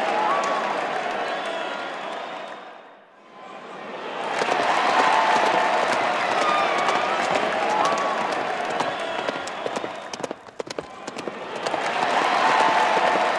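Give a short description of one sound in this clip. A large crowd cheers and chatters loudly outdoors.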